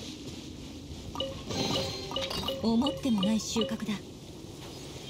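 A treasure chest opens with a bright magical chime.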